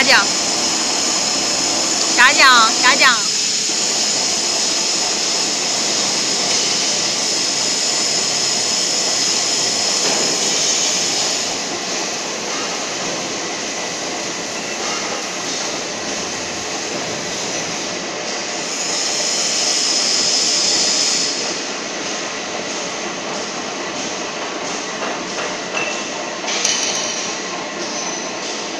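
An electric motor whirs steadily.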